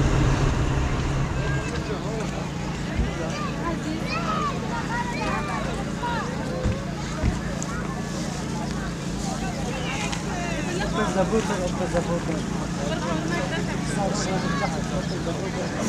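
Men, women and children chatter and call out nearby outdoors.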